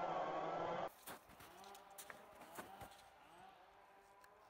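Boots crunch on snow.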